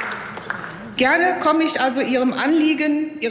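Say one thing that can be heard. A middle-aged woman speaks into a microphone in a large hall.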